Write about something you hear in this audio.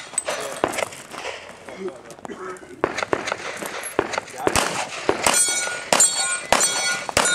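Pistol shots crack outdoors in quick bursts, with a short echo.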